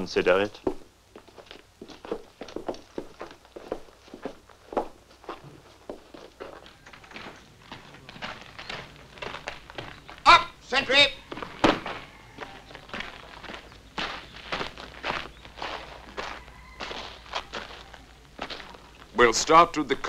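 Boots crunch steadily along a path as men walk.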